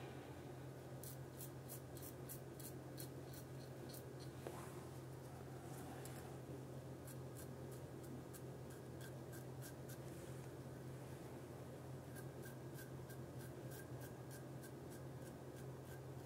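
A razor scrapes through stubble in short, repeated strokes.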